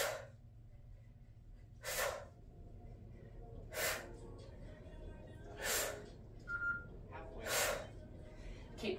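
A woman exhales sharply in a steady rhythm.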